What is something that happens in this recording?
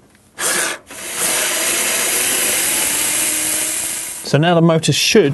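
A cordless drill whirs steadily as it drives out a bolt.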